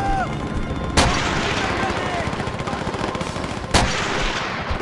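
A rifle fires sharp, loud shots with a short echo.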